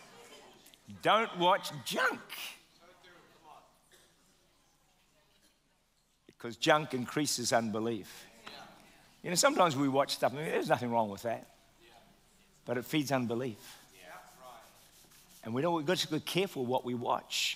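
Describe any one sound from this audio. A man speaks calmly into a microphone in a large room, pausing between phrases.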